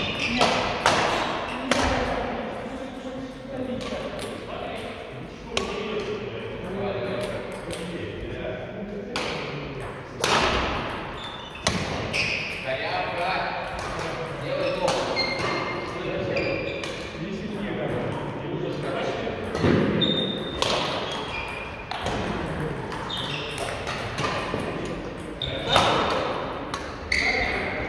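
Badminton rackets strike a shuttlecock with sharp smacks in a large echoing hall.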